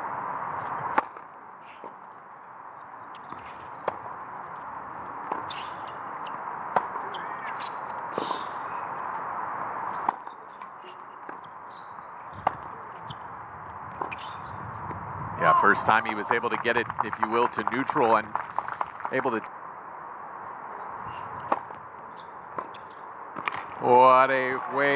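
A tennis ball is struck with sharp pops, back and forth.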